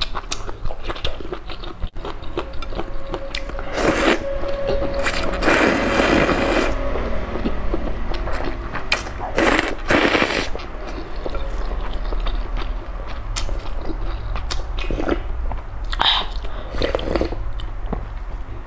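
A young woman chews wetly up close.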